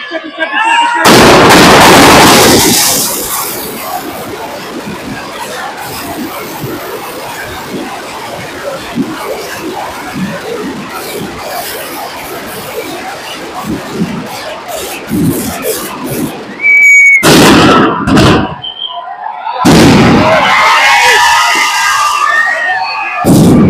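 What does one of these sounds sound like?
Firecrackers packed in a burning effigy explode in rapid bursts.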